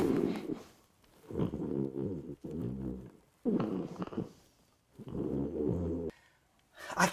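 A man snores heavily in slow, rasping bursts.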